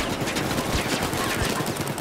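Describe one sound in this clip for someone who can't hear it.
Gunfire cracks in bursts.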